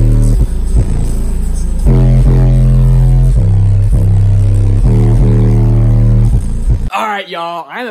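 Deep bass music booms very loudly.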